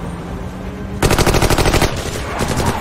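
Rifles fire in rapid bursts close by.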